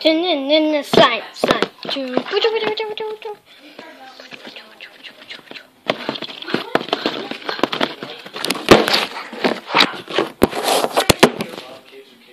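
Hands rub and bump against the microphone with loud knocks.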